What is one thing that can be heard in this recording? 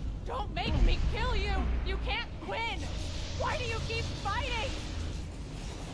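A young woman speaks in a strained, pleading voice.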